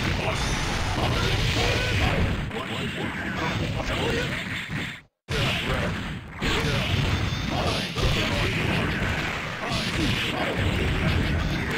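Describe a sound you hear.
Fast, driving game music plays.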